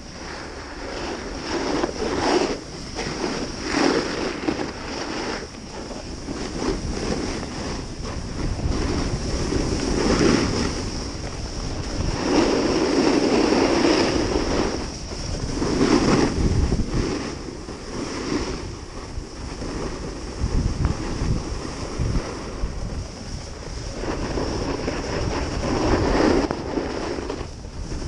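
Wind rushes loudly past, buffeting outdoors.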